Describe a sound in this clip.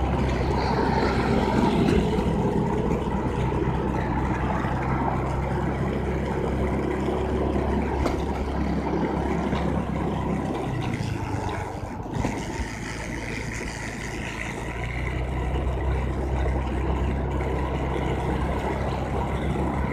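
Wind rushes past as the scooter rides along.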